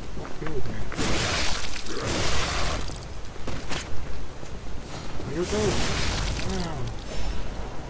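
Blades swing and clash in a fight.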